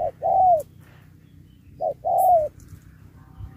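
A dove coos close by in short, low, rising-and-falling calls.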